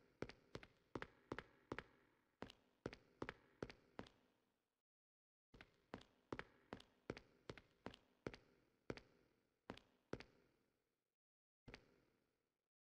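Footsteps thud on a hard floor at a steady pace.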